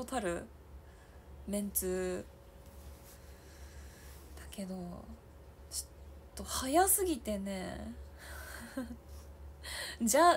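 A young woman speaks close by, expressively and with pauses.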